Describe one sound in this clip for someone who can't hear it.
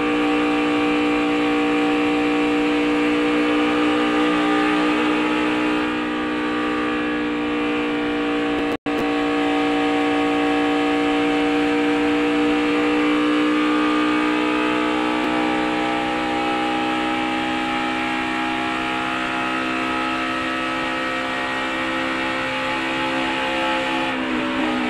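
A race car engine roars loudly at high speed, holding a steady pitch.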